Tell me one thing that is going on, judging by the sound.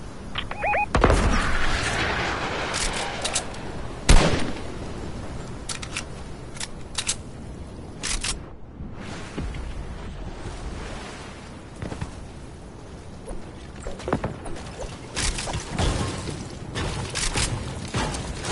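Gunshots ring out in short, sharp bursts.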